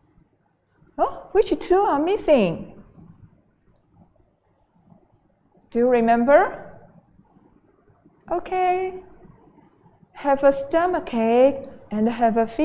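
A woman speaks with animation into a close microphone, in short bursts with pauses.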